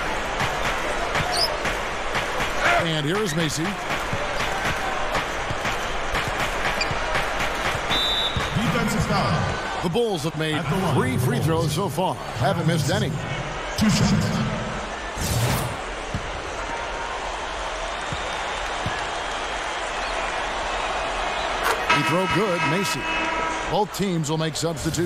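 A crowd murmurs and cheers steadily in a large echoing arena.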